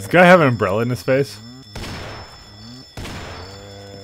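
A revolver fires a single loud shot.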